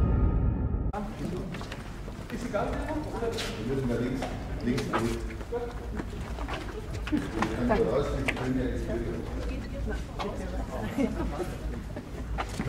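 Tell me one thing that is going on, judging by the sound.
Footsteps shuffle on paving stones.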